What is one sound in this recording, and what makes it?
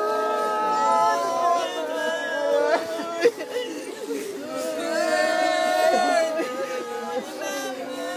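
A woman sobs and weeps nearby.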